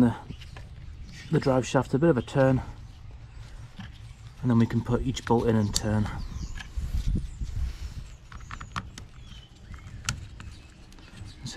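Plastic parts click and knock as they are fitted together by hand.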